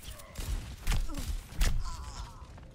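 Energy blasts crackle and explode.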